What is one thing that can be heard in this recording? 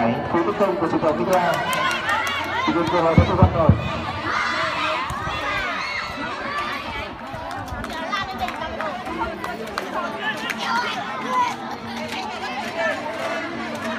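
Children shout and call out outdoors.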